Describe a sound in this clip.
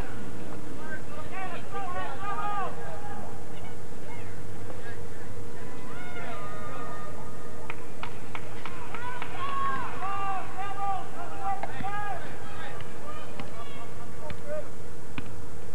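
Young men shout calls across an open field, heard from a distance.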